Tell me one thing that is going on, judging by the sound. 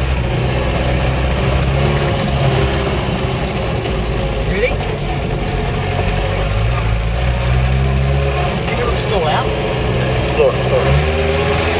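A car engine drones steadily and changes pitch as the car drives over rough ground.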